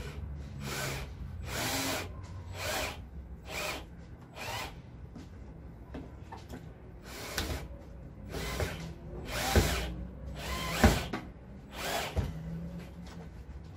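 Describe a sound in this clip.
A cordless drill whirs in short bursts, driving screws into a metal hasp on a wooden door.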